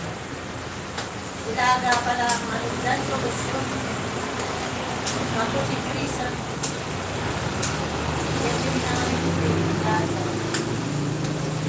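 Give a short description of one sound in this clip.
Metal utensils clink and clank against a cooking pot.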